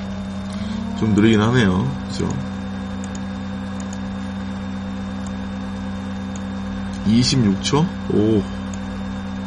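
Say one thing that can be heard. A man speaks calmly into a microphone, in short bursts.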